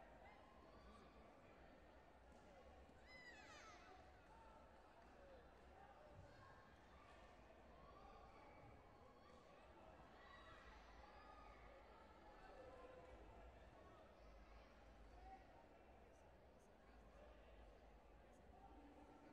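A large crowd murmurs and shouts in a big echoing hall.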